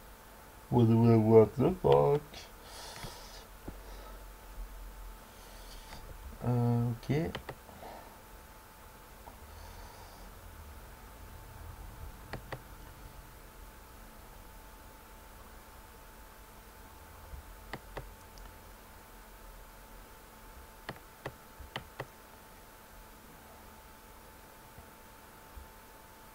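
Short wooden clicks sound as chess moves are played.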